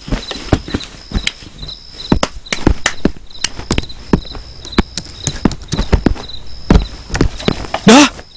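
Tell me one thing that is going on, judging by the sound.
Punches and kicks land with sharp, rapid thuds.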